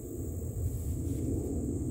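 Garden shears snip a stem.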